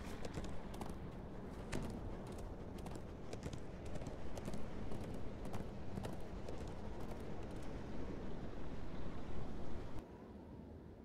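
A character's footsteps patter steadily on a wooden deck.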